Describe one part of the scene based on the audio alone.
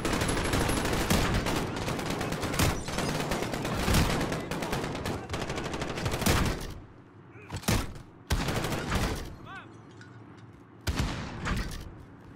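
Rifle fire rattles in rapid bursts, with loud single shots.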